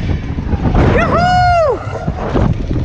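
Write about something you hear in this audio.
A rider screams in a high voice.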